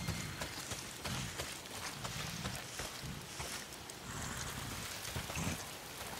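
Footsteps crunch and rustle through undergrowth.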